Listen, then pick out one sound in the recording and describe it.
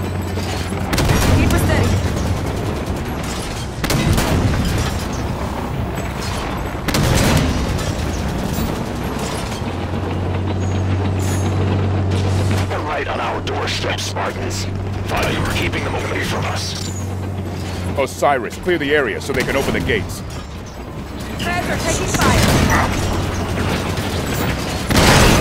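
A tank cannon fires with heavy blasts.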